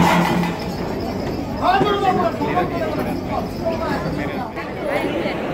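A large crowd chatters loudly all around.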